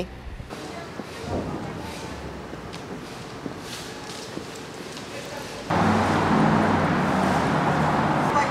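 Footsteps tap lightly on pavement.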